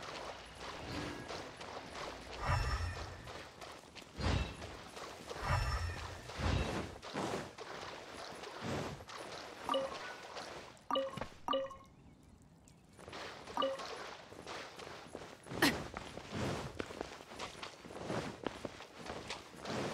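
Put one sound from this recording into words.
Footsteps splash quickly through shallow water.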